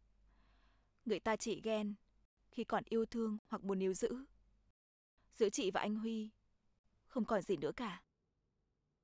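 A young woman speaks calmly and earnestly, close by.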